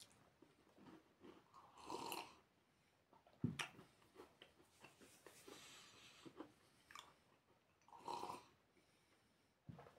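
A young man sips a drink from a mug.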